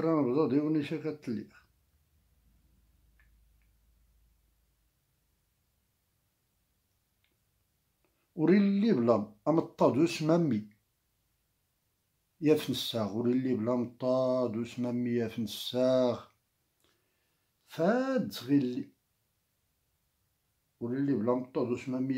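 An elderly man speaks calmly and close up, with pauses.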